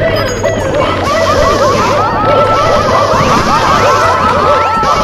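Cartoonish game sound effects chirp and bounce rapidly over one another.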